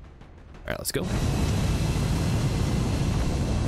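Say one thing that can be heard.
A dropship's jet engines roar loudly and steadily.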